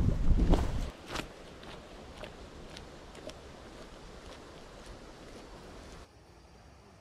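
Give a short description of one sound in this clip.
A person's footsteps crunch on a dirt path.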